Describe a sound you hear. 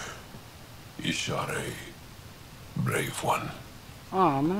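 A woman speaks calmly in a low voice.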